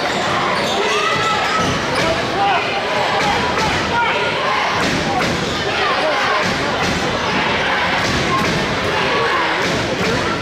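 A basketball bounces steadily on a wooden floor.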